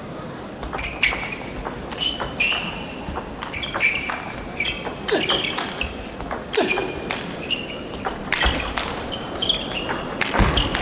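Shoes squeak sharply on the floor.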